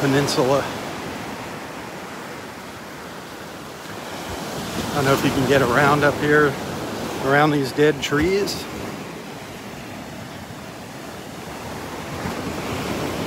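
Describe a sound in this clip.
Small waves wash gently onto a beach.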